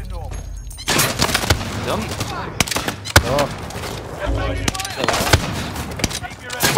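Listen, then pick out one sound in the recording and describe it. A rifle fires loud, sharp shots.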